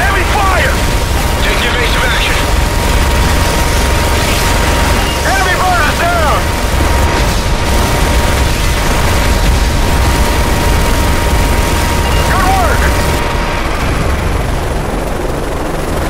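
A helicopter's rotor thuds steadily close by.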